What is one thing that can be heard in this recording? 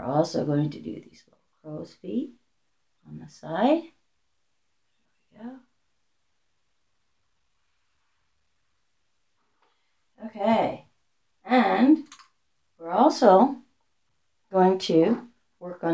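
An elderly woman speaks calmly close by, in short phrases with pauses.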